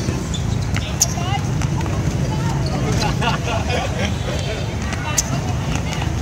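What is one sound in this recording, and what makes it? A ball is kicked with sharp thuds on a hard court.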